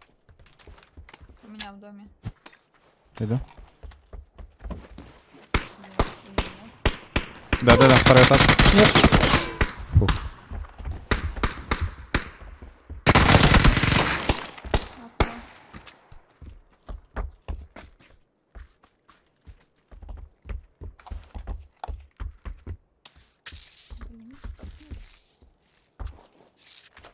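Footsteps thud on wooden floors.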